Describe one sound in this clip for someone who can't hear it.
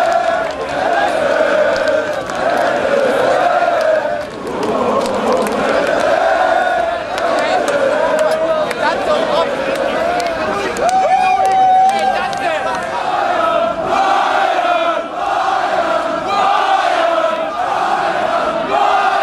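A large crowd of men sings and chants loudly outdoors.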